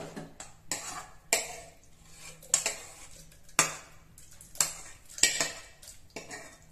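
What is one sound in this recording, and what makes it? A metal spoon scrapes and clinks against a metal pan.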